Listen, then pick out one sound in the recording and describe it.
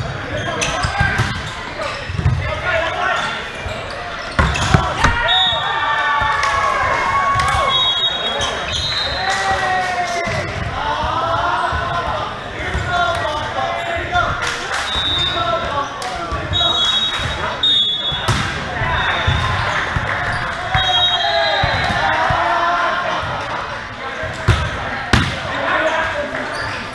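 Players' shoes squeak sharply on the court.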